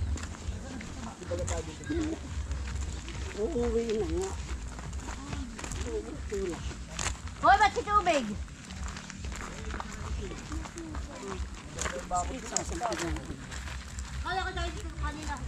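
Women talk and call out nearby, outdoors.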